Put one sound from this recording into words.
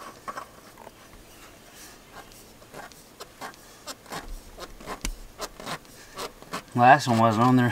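A hand tool clicks and scrapes against metal.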